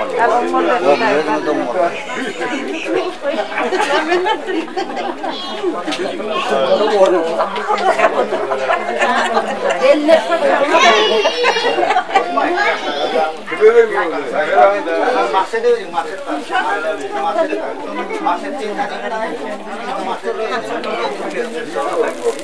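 A crowd of women chatter and greet each other warmly nearby.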